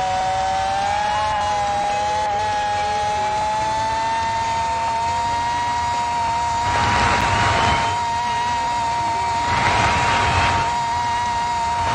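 A racing car engine whines at a high, steady pitch.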